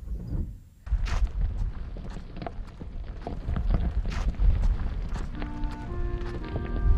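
Footsteps crunch on gravel.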